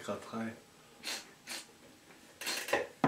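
A man sniffs sharply.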